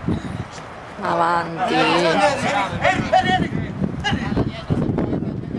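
Young players shout to each other across an open pitch outdoors.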